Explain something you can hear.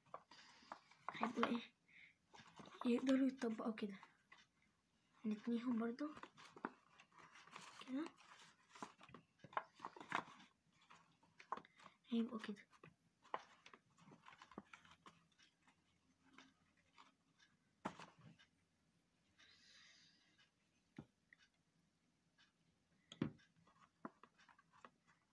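Paper crinkles and rustles as it is folded.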